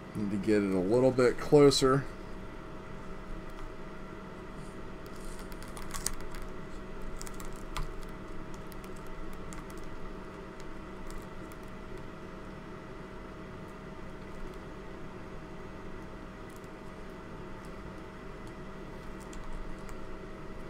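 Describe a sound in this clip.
Wires and plastic parts rustle and click softly as hands handle them.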